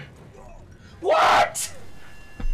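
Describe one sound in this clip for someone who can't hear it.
Wood and chains crash loudly as a bridge gives way.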